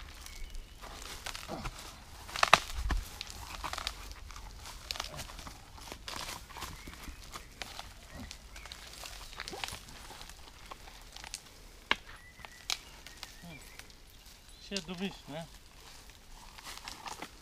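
Roots and dry branches crack and snap as a man pulls on a fallen stump.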